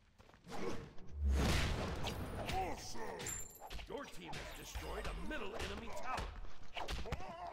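Blows thud and clash in a close fight.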